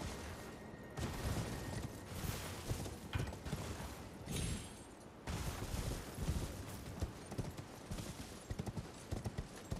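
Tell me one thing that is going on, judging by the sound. Horse hooves thud rapidly on the ground at a gallop.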